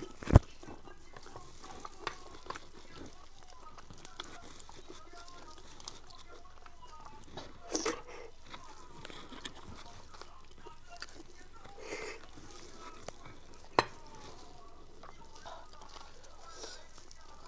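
Gloved hands squelch and tear through saucy food close up.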